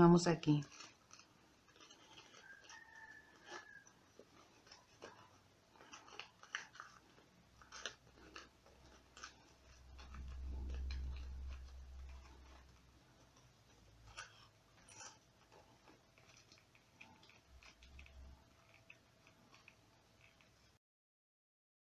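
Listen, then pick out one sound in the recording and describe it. Hands crinkle and fold crumpled paper.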